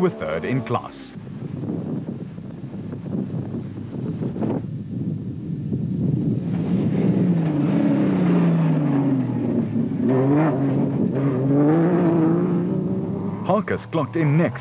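A racing truck's engine roars and revs as it speeds over dirt.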